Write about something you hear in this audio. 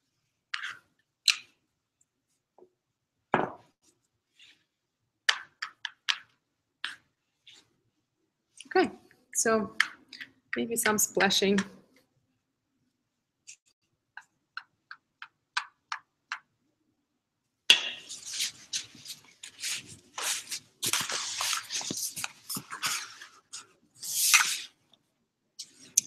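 Plastic crinkles and rustles as a hand rubs it across a surface.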